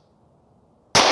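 A pistol fires a single loud shot outdoors.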